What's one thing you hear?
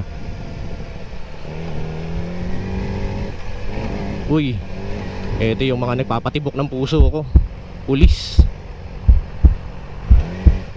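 A motorcycle engine hums and revs while riding.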